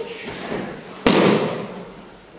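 A body thumps onto a padded mat.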